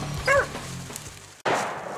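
A hound bays nearby.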